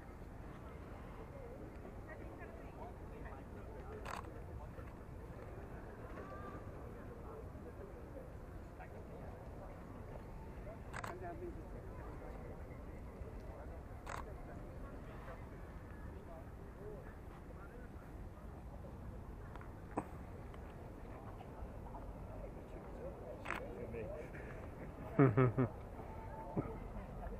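A crowd of people murmurs at a distance outdoors.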